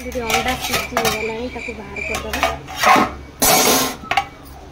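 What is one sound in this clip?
A metal lid clanks against a pan.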